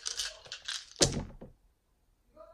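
Dice clatter as they are thrown into a tray.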